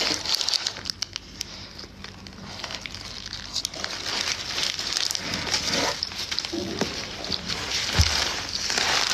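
Paper wrapping crinkles and rustles.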